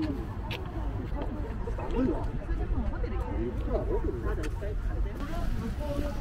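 Several adults chat nearby in calm voices.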